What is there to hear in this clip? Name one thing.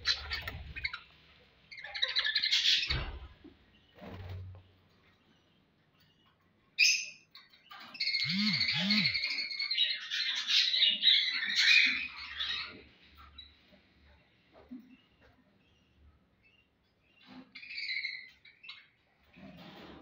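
Small birds chirp and chatter loudly nearby.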